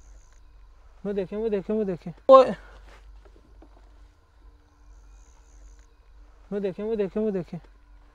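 A bird calls from the bushes in a quick run of hoarse, croaking notes.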